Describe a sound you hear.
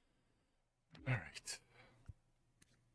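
A man speaks briefly into a microphone, close and animated.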